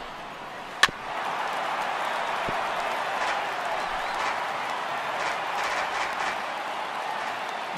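A crowd cheers louder after the hit.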